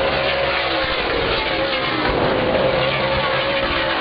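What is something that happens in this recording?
A race car roars past up close.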